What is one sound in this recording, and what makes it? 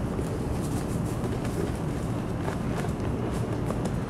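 Children's footsteps shuffle quickly over a dirt path.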